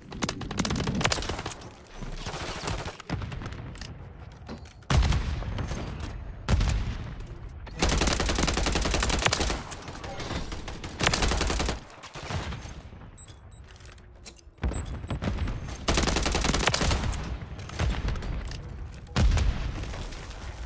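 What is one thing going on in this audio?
A young man talks into a microphone with animation.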